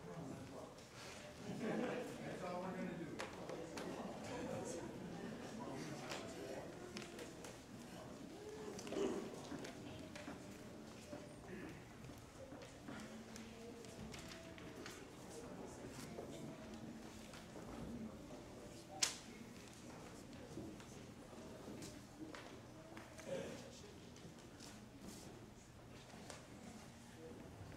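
A crowd murmurs and talks quietly in a large echoing hall.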